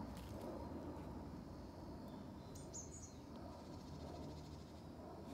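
A dog sniffs and snuffles at the ground.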